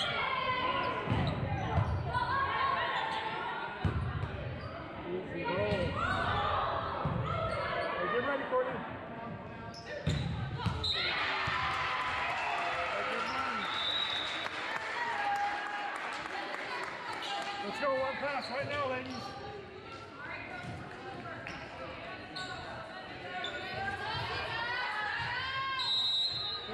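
Young women call out to each other during play.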